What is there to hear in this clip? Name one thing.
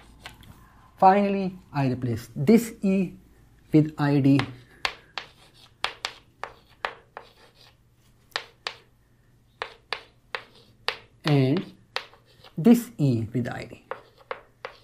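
A middle-aged man speaks calmly into a close microphone, explaining.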